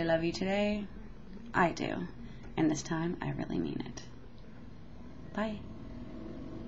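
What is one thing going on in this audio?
A woman speaks calmly and close to a microphone, in short phrases with pauses.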